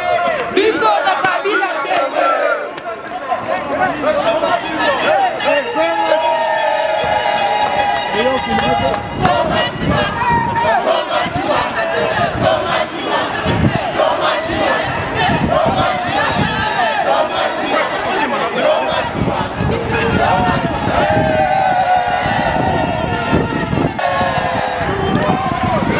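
A crowd of men and women sings and chants loudly outdoors.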